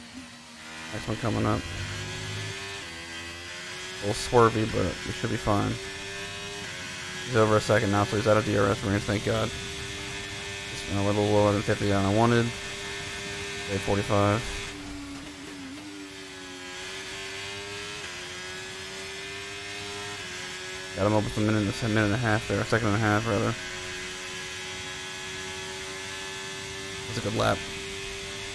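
A racing car engine whines steadily, its pitch rising and falling with gear changes.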